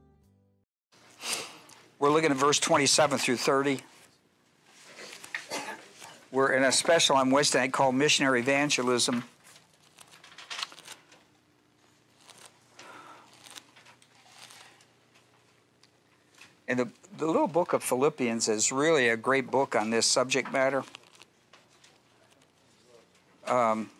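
An elderly man speaks calmly through a microphone, in bursts with pauses.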